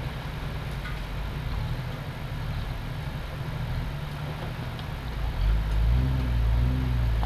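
Tyres crunch over rocks and water on a rough trail.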